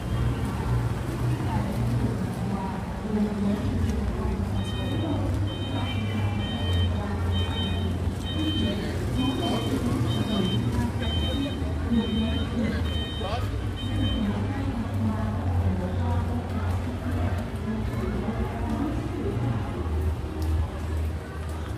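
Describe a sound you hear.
Footsteps tap on a wet pavement.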